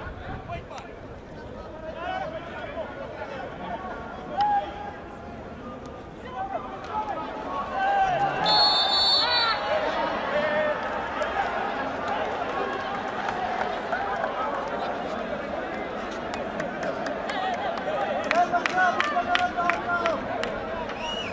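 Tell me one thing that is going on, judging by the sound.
A crowd of spectators shouts and cheers in a stadium.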